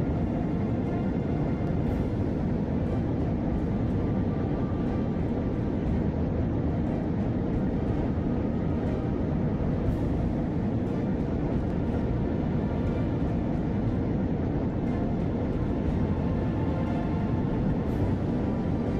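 Rocket thrusters roar with a steady, deep rumble.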